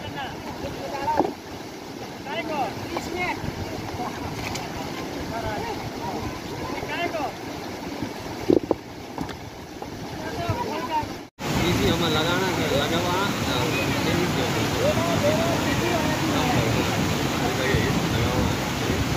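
Men talk outdoors over the sound of rushing water.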